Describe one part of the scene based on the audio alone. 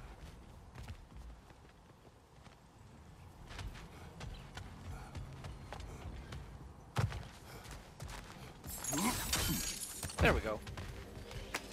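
Heavy footsteps thud on wooden boards.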